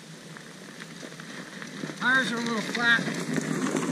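A wheelbarrow rolls over bumpy ground.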